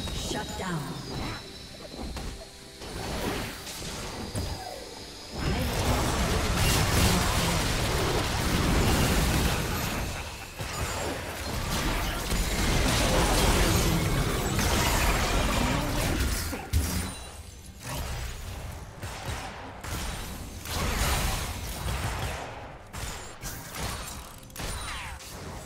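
Video game spells blast and crackle during a battle.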